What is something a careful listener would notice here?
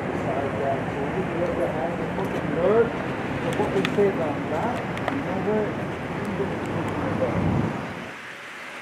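Several men talk over one another nearby, outdoors.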